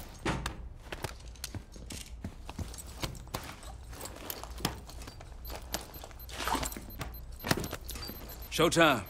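Metal clicks and clanks as a device is fixed to a heavy door.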